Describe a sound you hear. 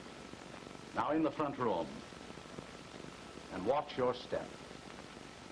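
A middle-aged man speaks in short bursts.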